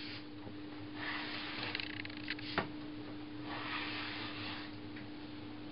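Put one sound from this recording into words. A hand plane shaves wood in long rasping strokes.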